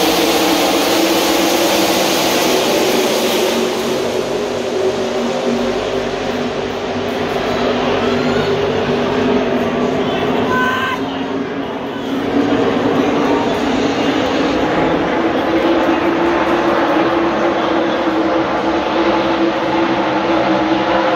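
Race car engines roar loudly and steadily around a track.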